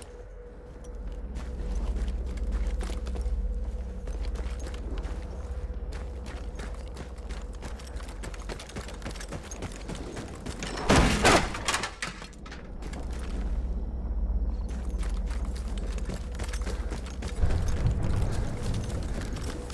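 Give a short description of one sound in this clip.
Footsteps tread on dirt and grass at a steady walking pace.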